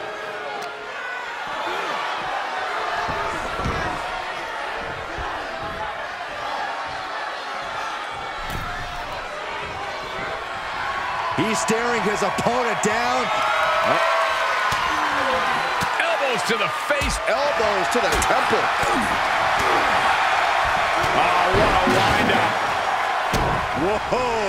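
Blows land with heavy thuds.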